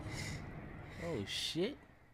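A man laughs.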